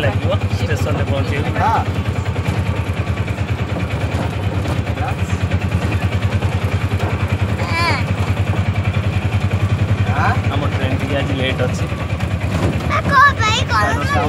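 An engine rumbles inside a moving vehicle.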